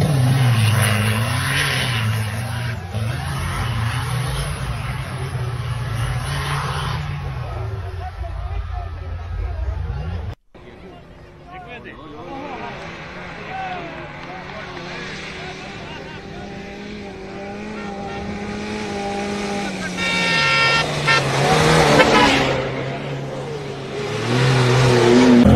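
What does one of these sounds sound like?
Off-road vehicle engines roar and rev over rough ground.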